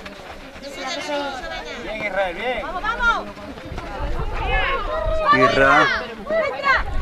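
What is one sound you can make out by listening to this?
Children shout loudly across an open field.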